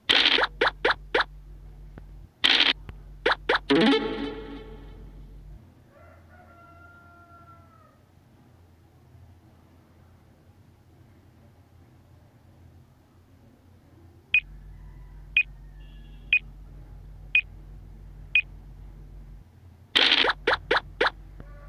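Dice rattle and clatter as they are rolled.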